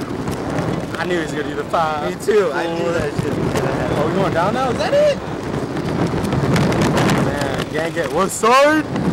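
Young men shout and yell excitedly close by.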